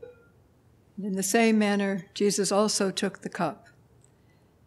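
An elderly woman sings a short phrase into a microphone.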